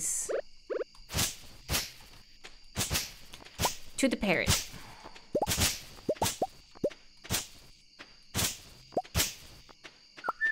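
Short, sharp game sound effects thud and chop in quick succession.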